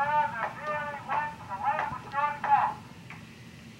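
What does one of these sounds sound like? An old phonograph plays a thin, tinny recording.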